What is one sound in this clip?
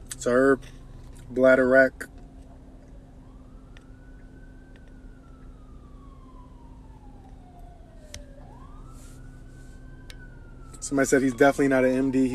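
A young man speaks casually and close by.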